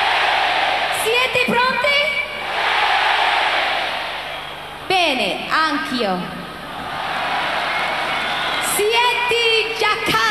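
A huge crowd cheers and screams in a large arena.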